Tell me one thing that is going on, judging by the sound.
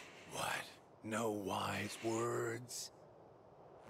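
A man speaks in a low, taunting voice.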